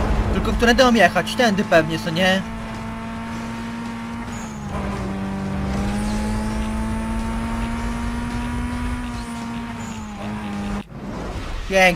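A car engine roars at high speed, rising and holding steady.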